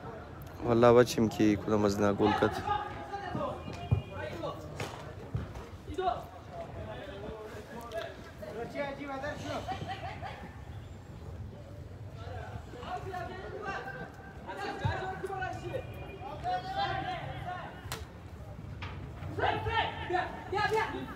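Young men shout to each other across an open outdoor field.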